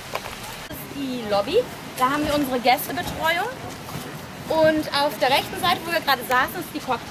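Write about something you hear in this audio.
A young woman speaks with animation outdoors, close by.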